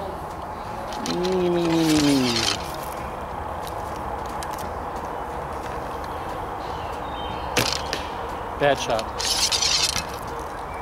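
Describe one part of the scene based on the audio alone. A middle-aged man speaks close by with a low, drawn-out voice.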